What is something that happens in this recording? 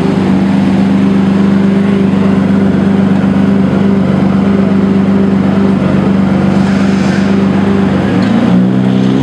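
A sports car engine idles with a deep, loud rumble.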